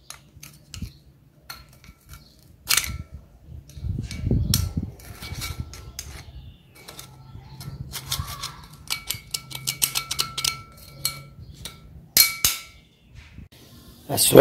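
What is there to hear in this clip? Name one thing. A screwdriver clicks and scrapes against a metal engine part.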